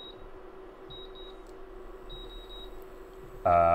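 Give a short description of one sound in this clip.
A cooktop beeps as its buttons are pressed.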